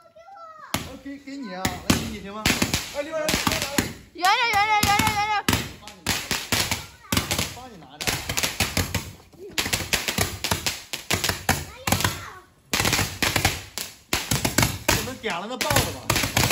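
Firecrackers pop and bang in quick bursts.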